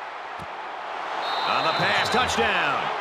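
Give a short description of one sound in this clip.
A large stadium crowd cheers and roars loudly.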